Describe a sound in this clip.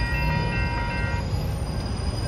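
A railway crossing bell rings.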